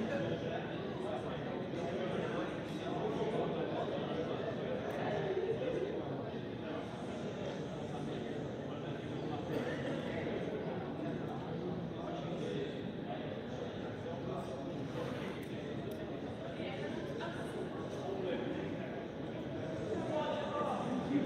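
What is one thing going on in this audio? A crowd of young players chatter together, echoing in a large hall.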